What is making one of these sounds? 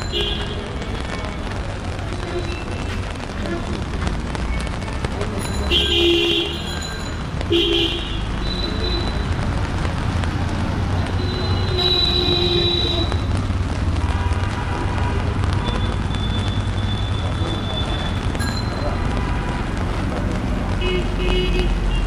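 Traffic rumbles steadily along a wet street outdoors.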